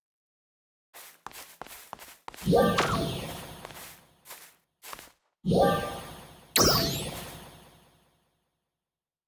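Game building pieces snap into place with bright ringing chimes.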